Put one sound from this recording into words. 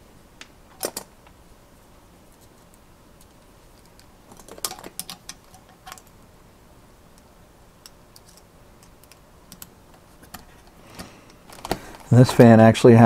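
Small plastic parts click and rattle as hands handle them.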